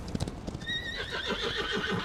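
A horse whinnies as it rears up.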